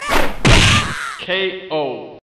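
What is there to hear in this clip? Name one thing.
Blows land with sharp, heavy thuds.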